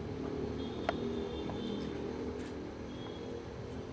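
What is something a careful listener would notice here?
A man kneels down on a wooden floor with a soft thump.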